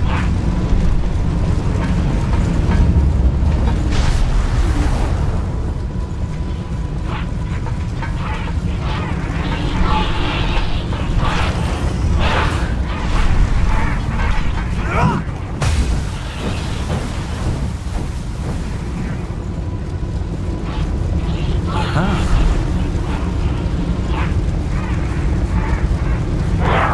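Fire roars and rumbles steadily.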